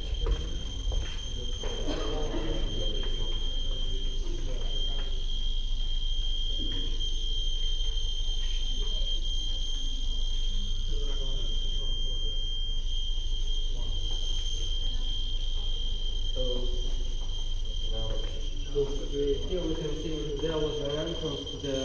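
A handheld meter gives a steady high whine.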